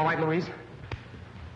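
A boy speaks with animation on an old, hissy film soundtrack.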